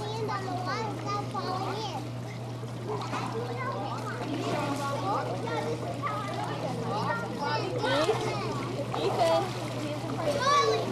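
Children shout and chatter playfully in a pool.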